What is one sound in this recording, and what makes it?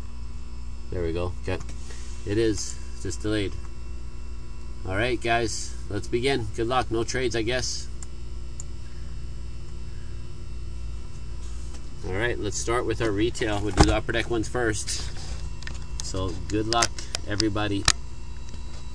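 A man talks steadily into a nearby microphone.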